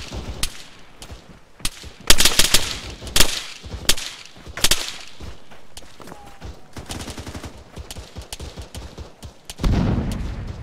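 Footsteps crunch and rustle through tall grass.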